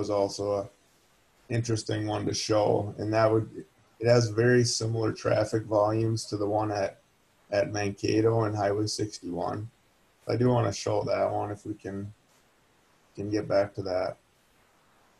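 A middle-aged man speaks calmly and close into a microphone.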